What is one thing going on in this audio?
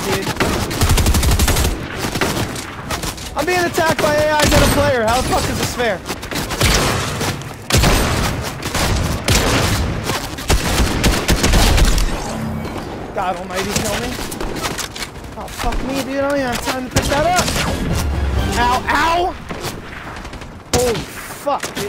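Rapid gunfire cracks in bursts.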